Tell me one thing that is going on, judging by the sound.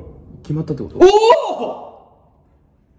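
A young man shouts out in excitement.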